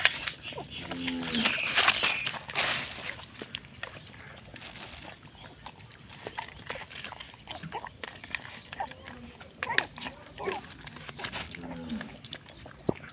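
A puppy whines briefly.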